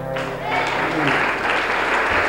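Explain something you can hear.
An acoustic guitar rings out on a final chord.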